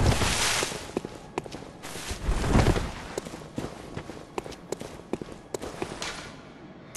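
Footsteps crunch and tap on stone and gravel.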